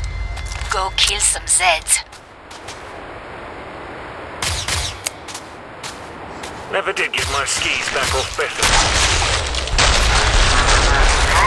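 Rifle shots fire in short bursts.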